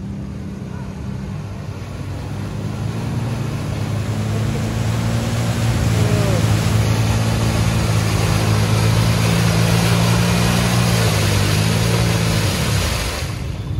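A side-by-side engine roars loudly through deep mud.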